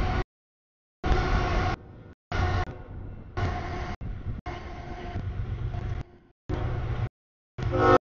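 A train horn blows loudly in long blasts.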